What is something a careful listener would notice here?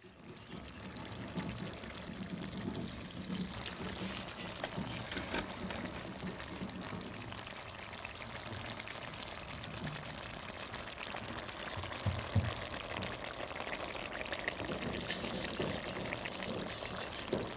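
A stew bubbles and simmers in a pot.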